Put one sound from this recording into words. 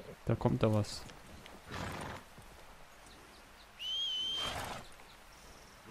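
A horse's hooves step on snowy ground.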